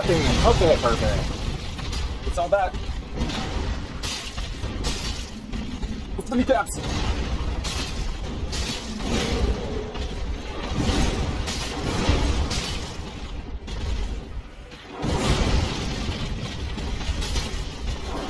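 A giant's heavy blows thud against the ground.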